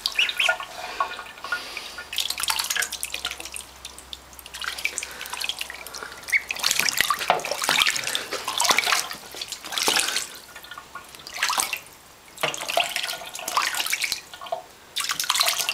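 A duckling splashes and flaps in water in a metal sink.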